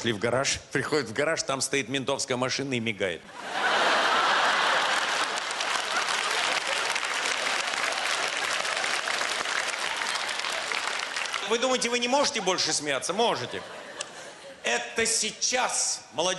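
An elderly man speaks with animation into a microphone before a live audience.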